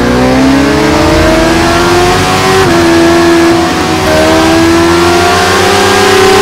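A motorcycle engine screams at high revs, its pitch climbing and dropping briefly at each gear shift.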